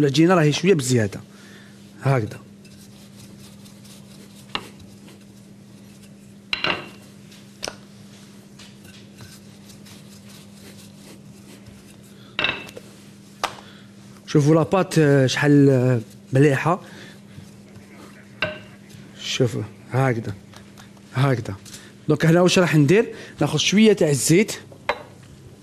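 A young man talks calmly close to a microphone.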